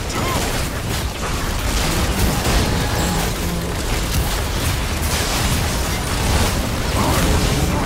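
Magic blasts and battle effects crackle and boom in a fast fight.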